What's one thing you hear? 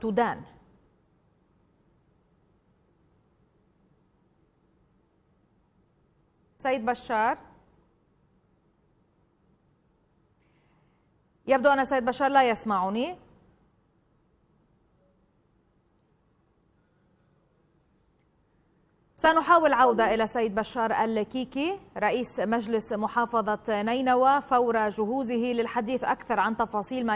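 A young woman speaks calmly and clearly into a microphone, in short bursts with long pauses.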